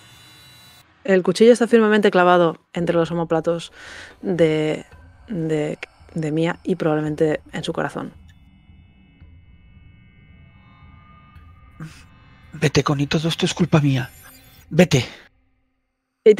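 A young woman speaks clearly into a microphone over an online call.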